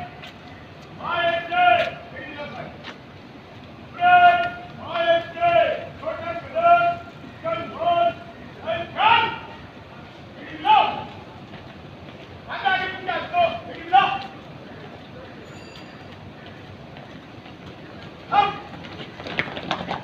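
A man shouts loud drill commands outdoors.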